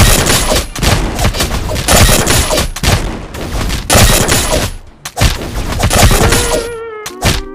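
Punches and blasts crash and crackle in quick, loud bursts.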